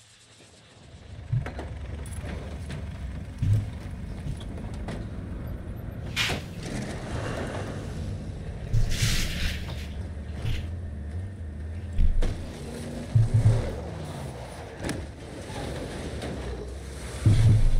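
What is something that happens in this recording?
A heavy military truck engine rumbles.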